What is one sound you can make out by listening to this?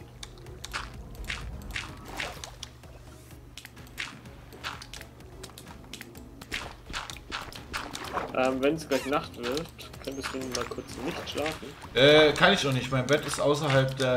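Bubbles gurgle underwater.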